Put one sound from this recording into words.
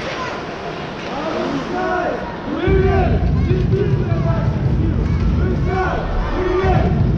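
Men shout to each other in the distance across the rink.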